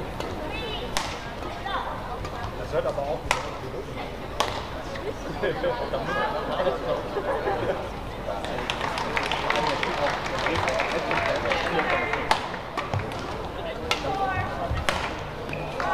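A racket strikes a shuttlecock with sharp pops.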